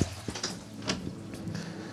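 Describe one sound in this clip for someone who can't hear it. A door handle clicks as a door opens.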